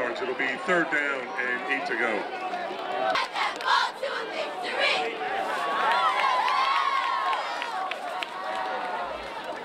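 A crowd of spectators talks and shouts outdoors.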